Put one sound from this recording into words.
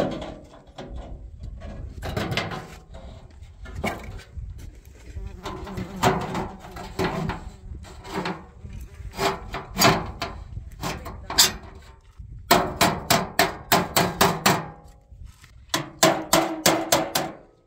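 A tool clanks and taps against a stainless steel sink.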